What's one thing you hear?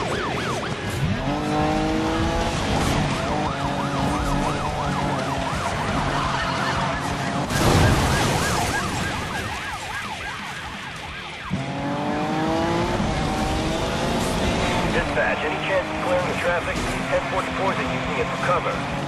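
A race car engine revs hard at high speed and shifts gears.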